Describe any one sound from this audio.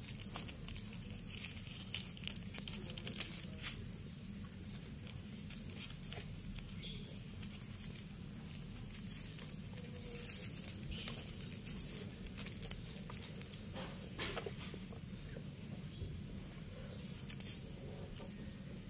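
Kittens rustle and knock plastic toys about.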